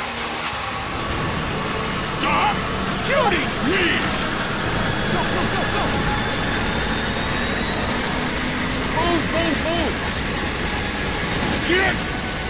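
A plane's engine drones low and steady.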